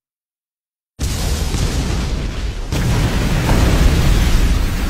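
A huge explosion roars with a deep, rumbling blast.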